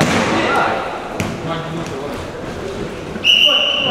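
A ball thuds off a player's foot.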